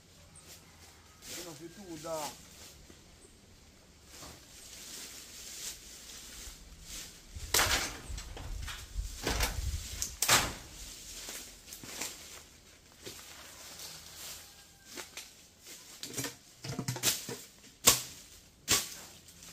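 Footsteps crunch and rustle on dry leaves and twigs nearby.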